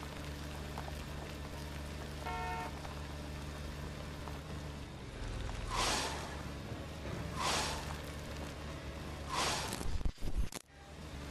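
Tyres roll over a dirt road.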